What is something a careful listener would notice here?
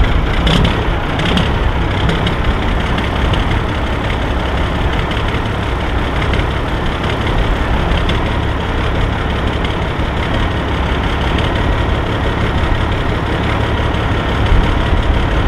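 A diesel truck engine idles with a deep, steady rumble.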